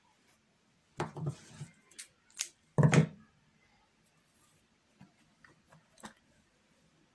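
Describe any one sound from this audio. Fabric rustles as a hand brushes across it.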